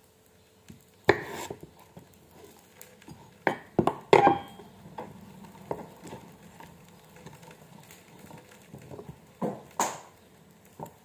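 A knife taps and thuds on a wooden board.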